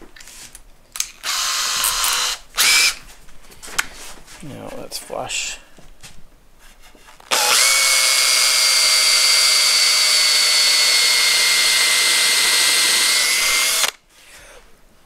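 A cordless drill whirs steadily as it bores into wood.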